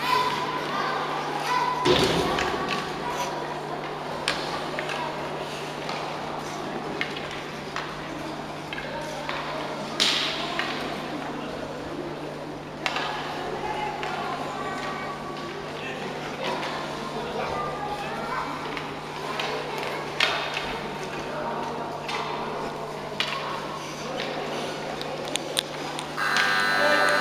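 Skate blades scrape across ice in a large echoing rink.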